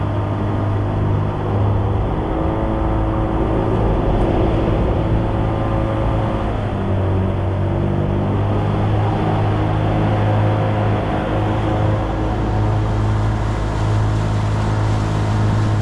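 An outboard motor drones steadily close by.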